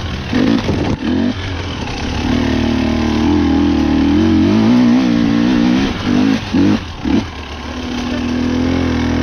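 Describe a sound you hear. Dry leaves crunch under tyres.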